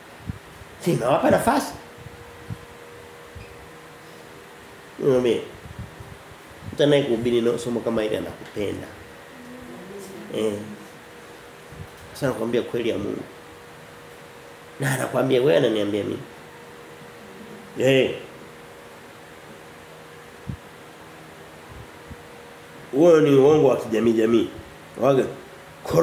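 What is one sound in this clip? A man speaks close up, calmly and in short phrases with long pauses.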